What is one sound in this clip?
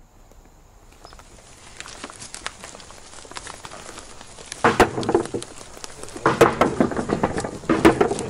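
Footsteps shuffle on dirt as several people walk.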